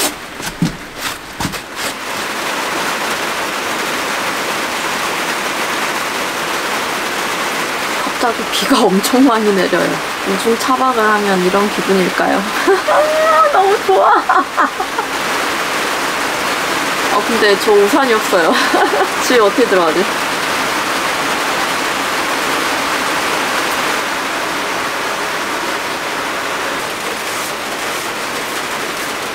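Rain patters steadily on a vehicle's roof and windows.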